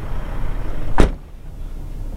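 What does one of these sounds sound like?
A metal gate clanks loudly.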